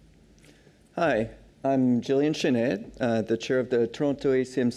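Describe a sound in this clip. A man speaks into a microphone, heard through loudspeakers in a large hall.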